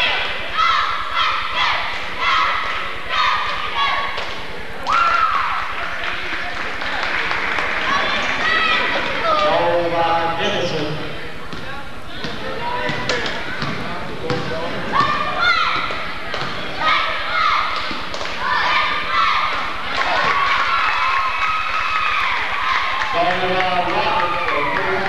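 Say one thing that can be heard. A crowd talks and cheers in an echoing gym.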